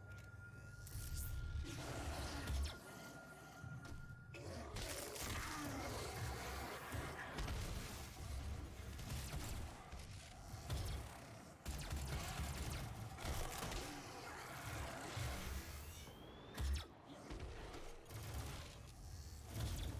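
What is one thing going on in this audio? Gunshots fire in rapid bursts with loud blasts.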